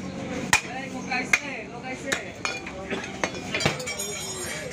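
A heavy cleaver chops sharply on a wooden block.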